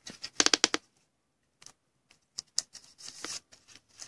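A plastic wrapper crinkles.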